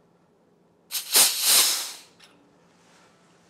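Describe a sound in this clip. Compressed gas hisses briefly from a valve.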